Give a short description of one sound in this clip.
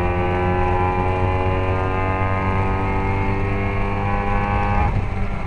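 A racing car engine roars close by at steady high revs.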